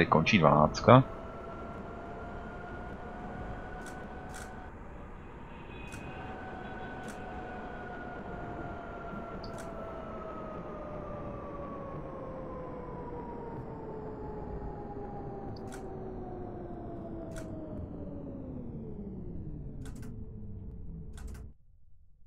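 Tram wheels rumble along the rails.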